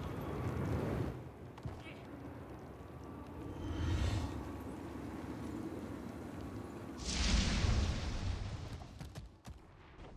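Heavy footsteps thud on a stone floor.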